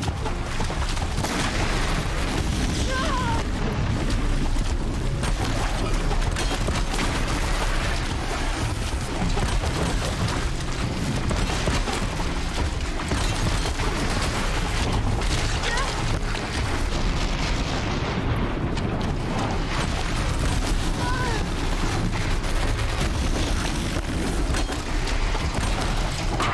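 Arrows whoosh as a bow is fired.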